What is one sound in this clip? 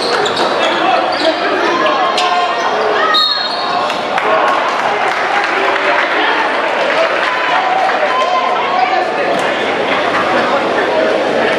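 A crowd of spectators cheers and shouts throughout a large echoing gym.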